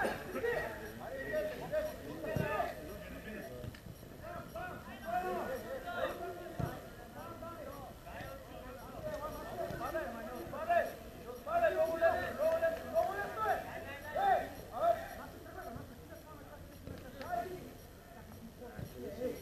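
Men call out and talk nearby, outdoors in the open.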